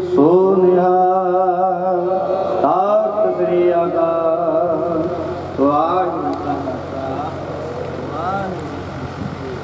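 An elderly man chants a prayer into a microphone, heard through loudspeakers.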